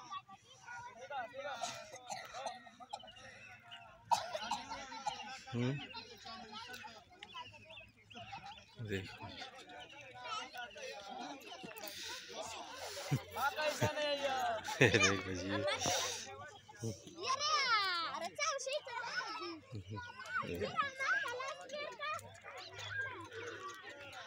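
Children shout and chatter excitedly outdoors.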